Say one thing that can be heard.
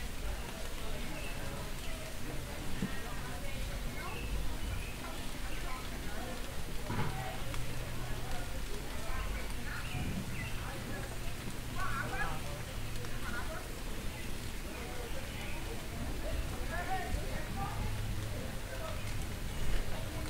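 Adults chat outdoors in the street.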